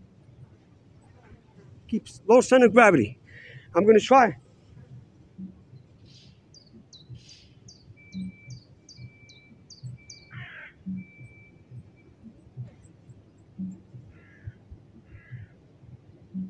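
Bare feet thud softly on grass.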